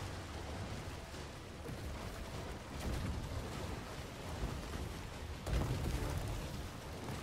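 Fireballs crash down and rumble in the distance.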